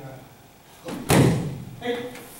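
A body thuds onto a mat.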